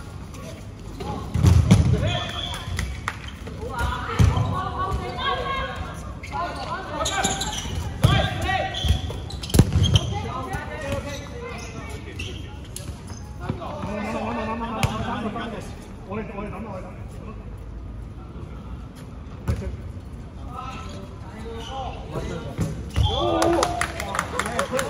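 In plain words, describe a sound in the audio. Young men and women shout and call out with animation across the hall.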